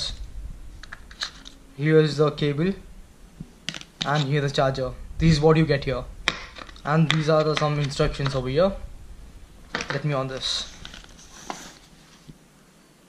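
Cardboard packaging and paper rustle and scrape as they are handled.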